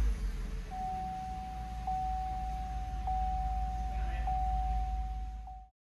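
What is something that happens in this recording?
A car engine runs with a low rumble.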